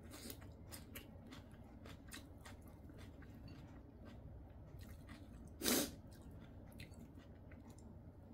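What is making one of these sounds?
Chopsticks click against dishes.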